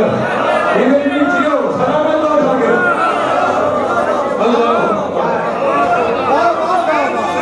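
A man speaks passionately and loudly through a microphone and loudspeakers, in a reverberant room.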